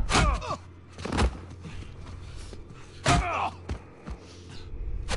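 Fists thud heavily as men brawl.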